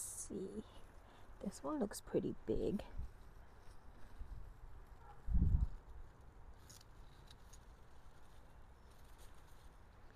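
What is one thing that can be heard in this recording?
Leaves rustle as a hand pulls radishes from the soil.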